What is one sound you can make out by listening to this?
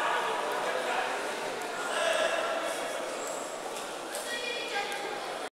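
A crowd of spectators murmurs and chatters in a large echoing hall.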